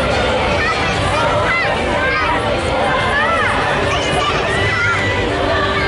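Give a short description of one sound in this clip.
Young women and men in the parade shout and sing out with excitement.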